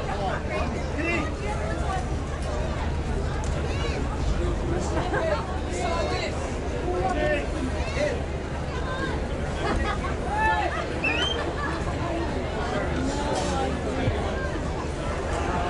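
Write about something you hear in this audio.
A crowd cheers and shouts excitedly.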